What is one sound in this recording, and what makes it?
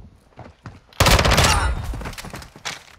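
A gun fires a rapid automatic burst.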